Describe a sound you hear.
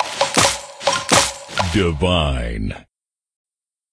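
Bright game chimes and pops ring out as sweets burst.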